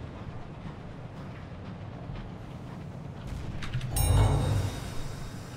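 A submarine engine hums low and steady.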